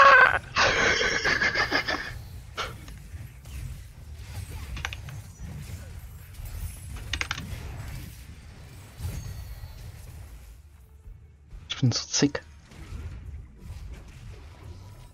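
Magical blasts and whooshes burst in quick succession during a fantasy battle.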